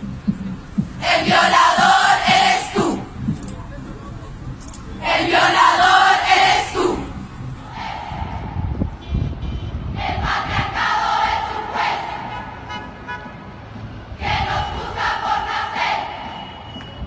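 A large crowd of women chants loudly in unison outdoors.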